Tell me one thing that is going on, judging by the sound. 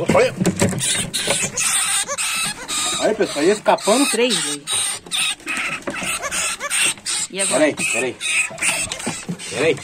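A rat scrabbles and scratches against wood and wire mesh.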